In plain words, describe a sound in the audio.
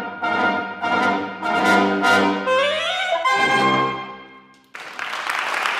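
A brass and saxophone ensemble plays a rising final phrase and holds a closing chord in an echoing hall.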